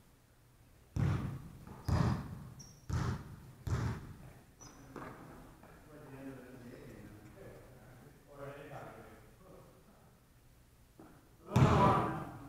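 A basketball bounces and thuds on a wooden floor in a large echoing hall.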